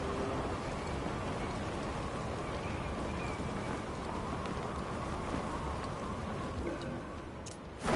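Wind rushes loudly past a falling body.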